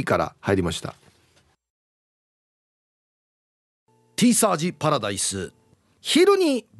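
A man speaks lively over a microphone, with short pauses.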